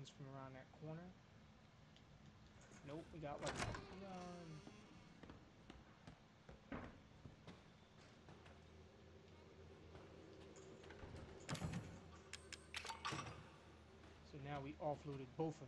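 Footsteps thud on creaking wooden floorboards.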